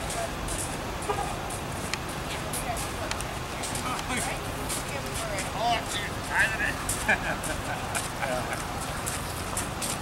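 A man speaks at a distance outdoors.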